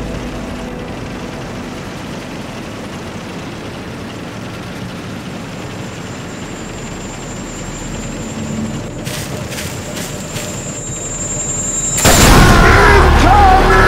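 Tank engines rumble steadily.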